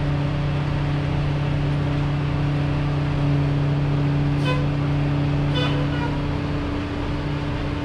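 A garbage truck engine idles with a steady low rumble nearby, outdoors.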